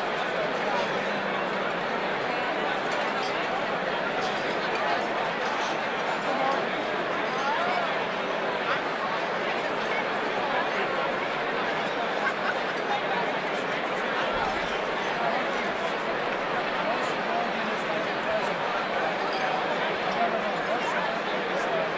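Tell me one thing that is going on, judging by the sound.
A large crowd of men and women chatters loudly in a big echoing hall.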